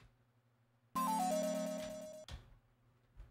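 A brief electronic fanfare plays.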